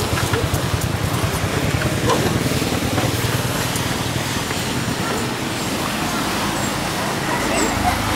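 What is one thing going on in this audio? Motorbike engines hum as they ride along a street.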